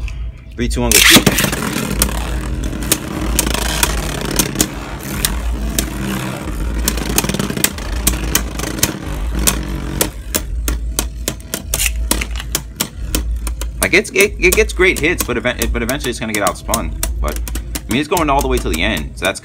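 Spinning tops whir and rattle in a plastic bowl.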